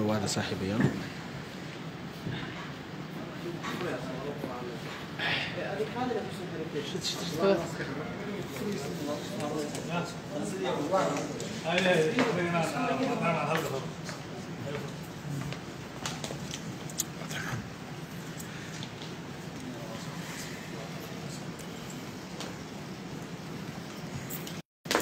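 Several people talk nearby in a murmur.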